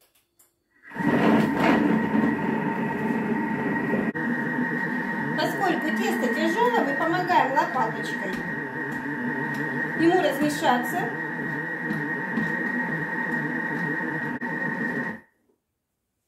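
A kitchen food processor's motor whirs.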